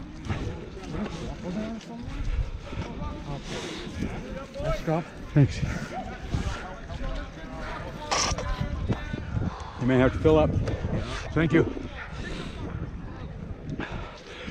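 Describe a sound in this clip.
A young man talks close by, outdoors.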